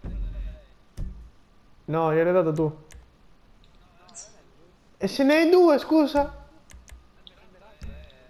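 Game menu sounds click as tabs change.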